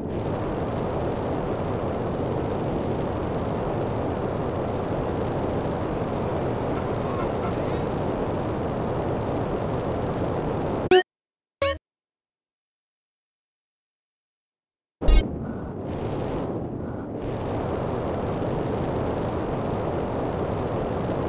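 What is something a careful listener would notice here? A jetpack roars steadily.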